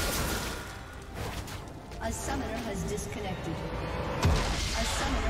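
Game combat sounds clash and thud.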